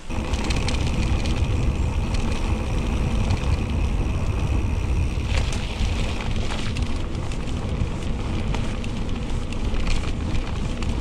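Bicycle tyres crunch and rattle over a dirt track.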